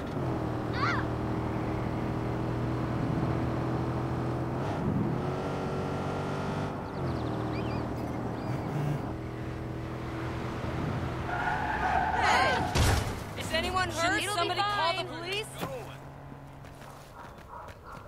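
A car engine hums steadily as a car drives along a road.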